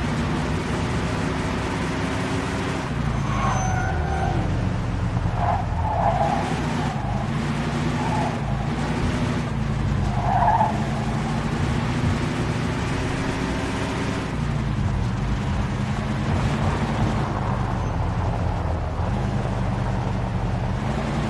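A car engine hums steadily, its pitch rising and falling as it speeds up and slows down.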